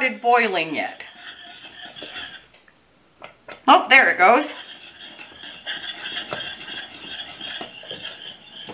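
A wire whisk scrapes and clicks against a metal pot.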